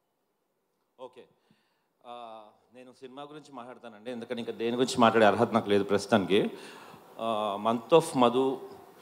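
A man speaks with animation into a microphone over loudspeakers in a large hall.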